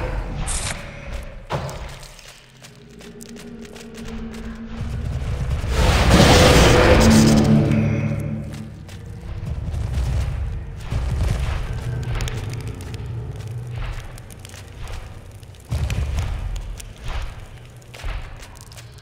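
Weapons strike and thud in a game fight.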